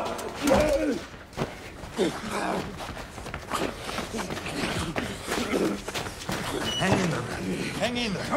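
A man groans and gasps in pain close by.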